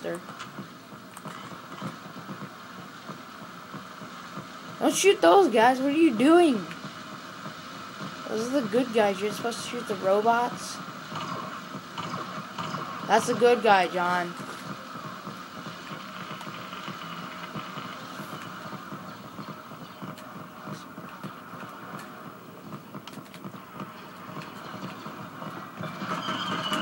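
Video game sound effects and music play from a television speaker.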